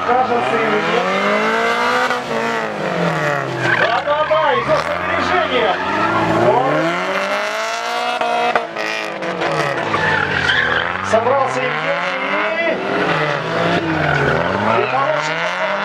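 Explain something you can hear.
A car engine revs hard, rising and falling again and again.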